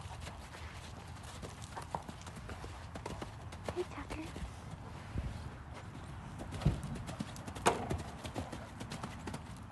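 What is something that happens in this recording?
A horse's hooves thud rhythmically on soft sand.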